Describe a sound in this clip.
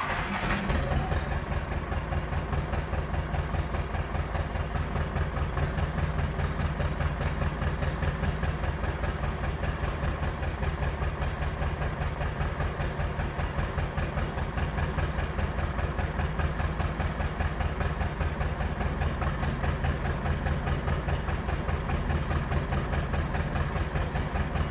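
A tractor engine idles close by with a steady, throbbing rumble.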